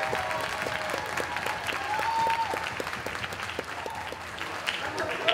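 An audience claps along in a steady rhythm in a large echoing hall.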